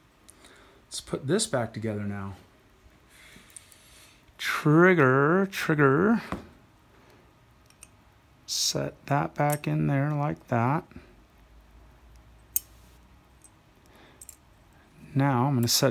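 Small metal parts click and scrape against each other.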